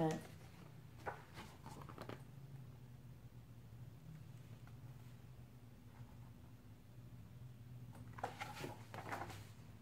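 Book pages rustle as a young woman turns them.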